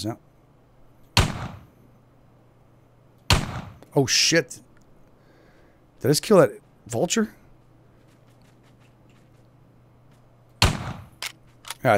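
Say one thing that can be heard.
A revolver fires sharp, single shots.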